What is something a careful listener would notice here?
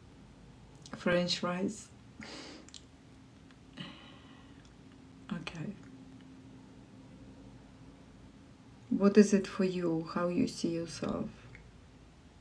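A woman speaks softly and close to the microphone, in short bursts with pauses.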